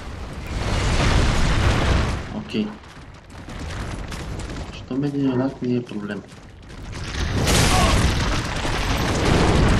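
Armoured footsteps crunch quickly over icy ground.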